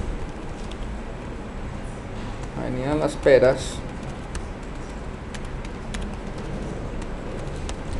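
Keys click on a computer keyboard.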